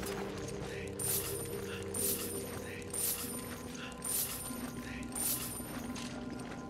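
Coins jingle as they are picked up in quick chimes.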